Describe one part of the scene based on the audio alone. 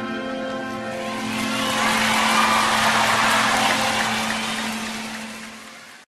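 A piano rings out with a sustained chord that slowly fades.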